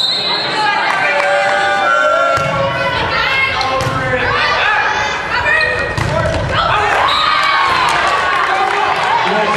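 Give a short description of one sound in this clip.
Young women shout and call out loudly in an echoing gym.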